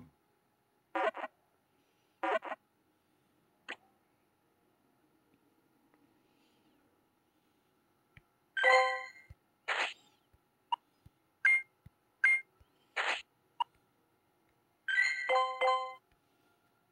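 Short electronic chimes and menu blips sound.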